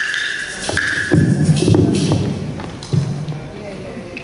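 Hand drums are struck loudly in a large echoing hall.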